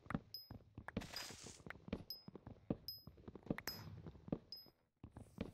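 An axe chops wood with quick, repeated knocks.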